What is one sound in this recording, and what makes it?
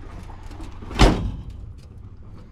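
A heavy metal truck door slams shut.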